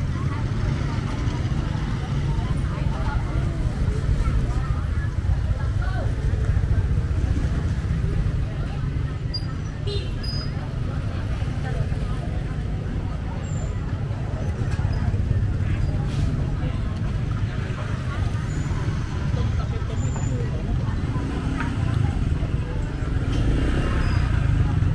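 Motorbike engines hum and putter past.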